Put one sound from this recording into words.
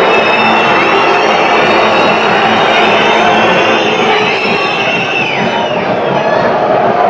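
Many fans in a stadium crowd whistle shrilly.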